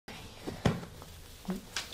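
A cushion thumps softly.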